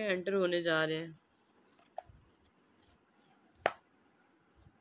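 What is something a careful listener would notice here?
A paper page is turned over.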